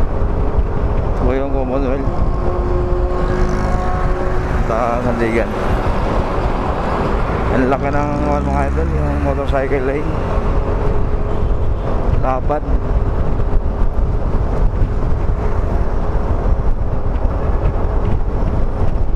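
Traffic rolls past on a road.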